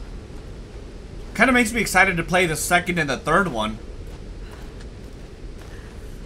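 Footsteps scrape on rocky ground.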